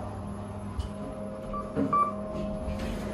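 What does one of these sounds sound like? A lift button clicks as it is pressed.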